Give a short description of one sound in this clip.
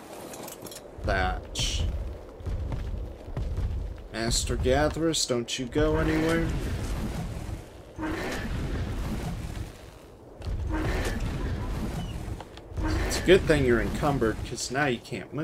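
Wind rushes past during flight.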